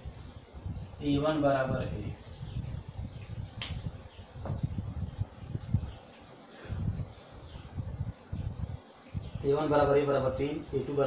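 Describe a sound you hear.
A man speaks in a steady, explaining voice, close by.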